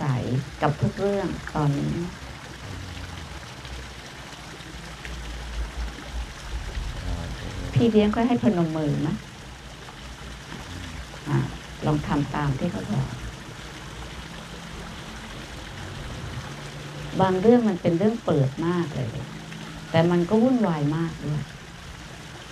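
An elderly woman speaks calmly and slowly through a microphone and loudspeaker, outdoors.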